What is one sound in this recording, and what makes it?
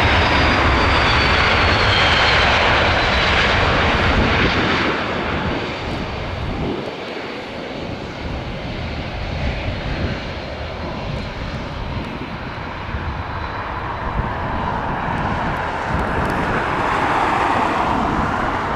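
A jet airliner's engines roar loudly as it taxis past.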